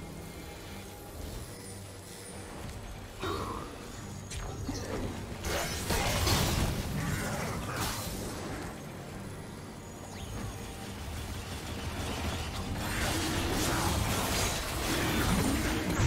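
Spell blasts and magical whooshes burst in quick succession.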